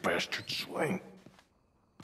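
A man speaks gruffly, close by.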